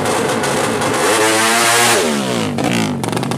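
A motorcycle speeds past with its engine pitch dropping.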